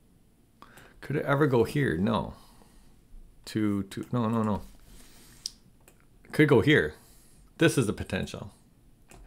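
A middle-aged man speaks calmly and thoughtfully, close to a microphone.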